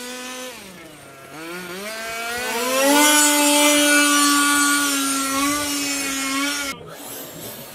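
Electric motors of small model cars whine loudly as the cars speed past, rising in pitch.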